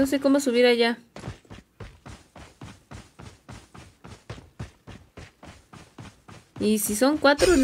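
Rapid gunshots crackle from a video game.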